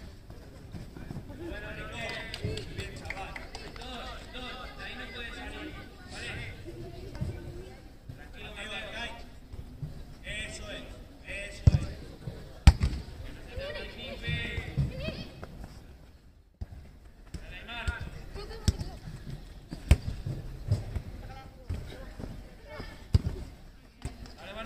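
Young players shout and call out across an outdoor field.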